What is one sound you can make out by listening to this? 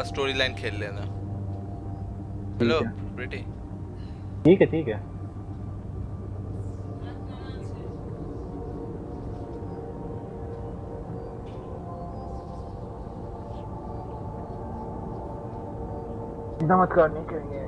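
Spacecraft engines hum steadily.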